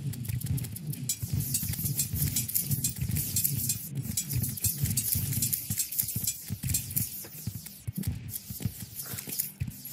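Rapid clicking hits sound in quick succession.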